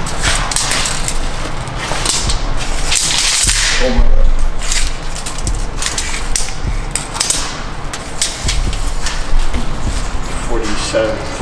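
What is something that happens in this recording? A metal tape measure rattles as it is pulled out.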